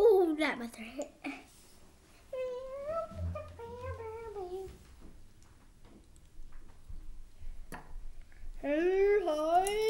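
Small plastic toys click on a wooden table.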